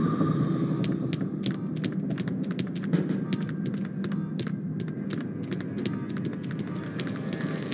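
Footsteps tap quickly on a wooden floor.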